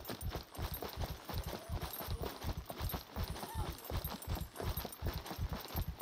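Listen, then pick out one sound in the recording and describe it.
Metal rattles with each step.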